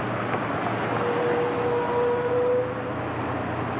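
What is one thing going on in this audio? Bus brakes squeal briefly as the bus comes to a stop.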